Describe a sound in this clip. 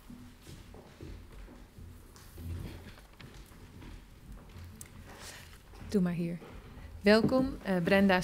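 People chatter quietly in a large room.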